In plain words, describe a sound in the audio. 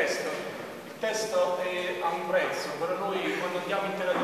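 An elderly man speaks with animation in an echoing hall.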